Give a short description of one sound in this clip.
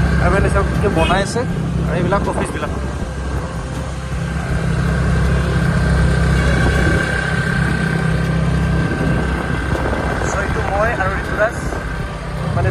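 A motor scooter engine hums steadily while riding.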